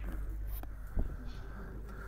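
Snooker balls knock against each other with a clack.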